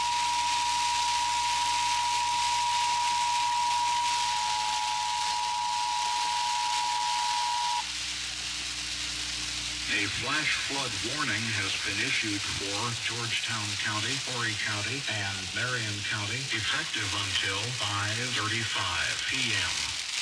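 Windshield wipers sweep back and forth.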